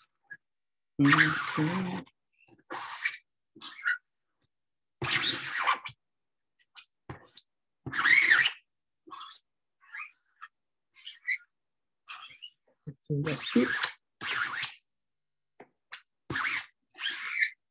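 A sponge dabs paint onto paper.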